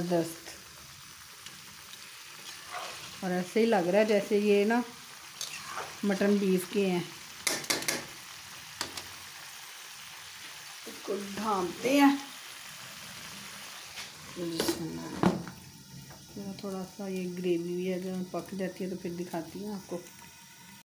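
Sauce bubbles and simmers in a pan.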